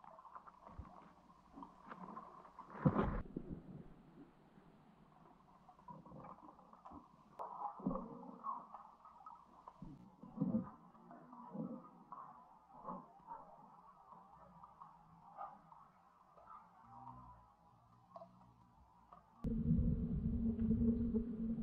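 Water swirls and knocks with a dull, muffled underwater sound.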